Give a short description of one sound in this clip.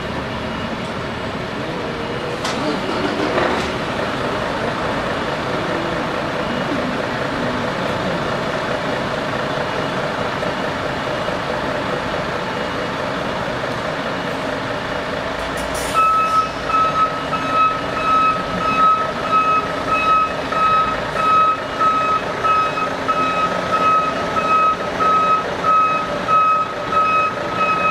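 Heavy truck engines rumble steadily outdoors as the trucks creep along.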